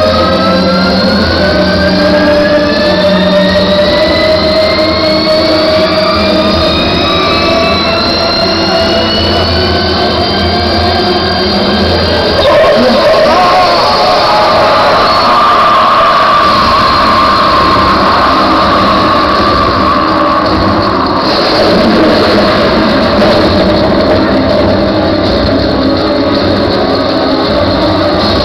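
Loud live music plays from a stage.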